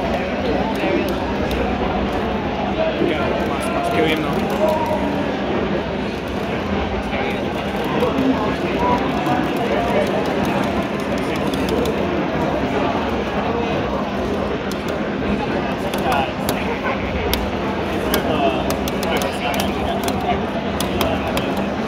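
Fighting game sound effects of hits, blasts and slashes play loudly from a television.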